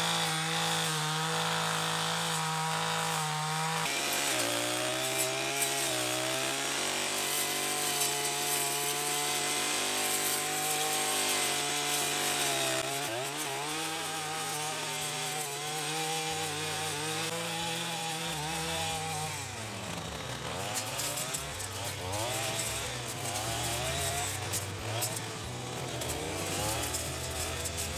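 A brush cutter engine drones loudly and close by, its pitch rising and falling as it revs.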